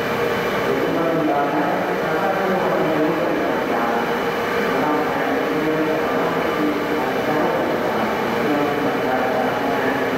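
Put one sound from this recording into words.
A stopped train hums steadily as it idles.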